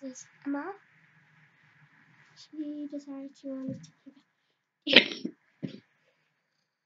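A young girl talks close by in a high, lively voice.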